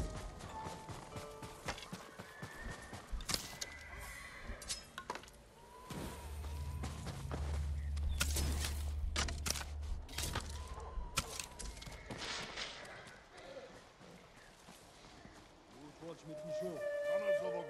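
Leaves rustle as a figure pushes through a bush.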